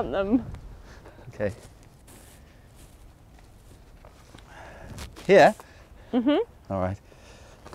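A spade chops into soil.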